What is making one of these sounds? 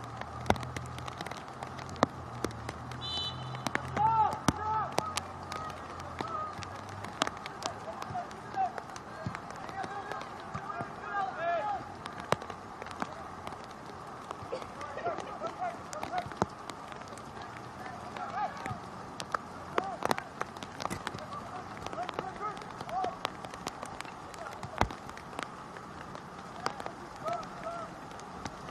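Young men shout to each other across an open outdoor field, heard from a distance.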